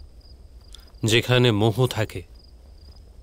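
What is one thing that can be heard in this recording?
A young man speaks calmly and briefly, close by.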